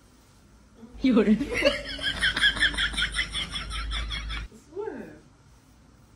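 A young woman squeals and laughs with excitement.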